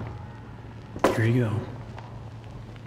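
A plate is set down on a wooden table with a clatter.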